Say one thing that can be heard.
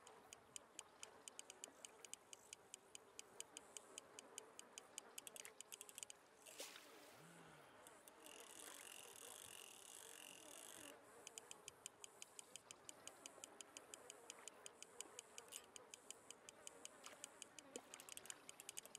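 A fishing reel clicks rapidly.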